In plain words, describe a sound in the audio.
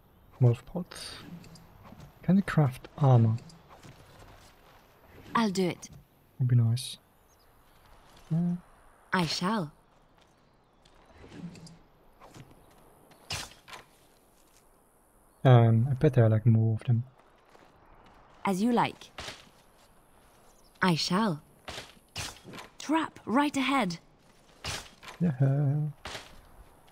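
A young man talks casually into a nearby microphone, in short bursts.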